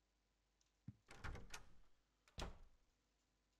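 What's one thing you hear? A door opens with a creak.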